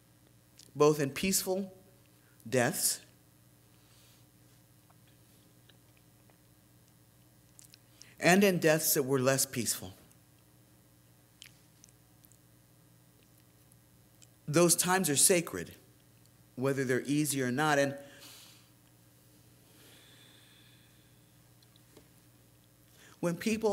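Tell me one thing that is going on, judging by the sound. An elderly man speaks slowly and calmly into a microphone, with long pauses.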